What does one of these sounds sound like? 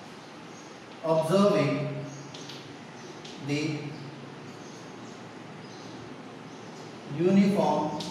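A man speaks calmly, close by, in short bursts.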